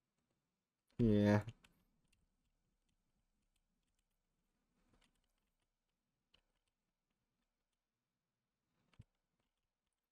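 Chickens cluck now and then.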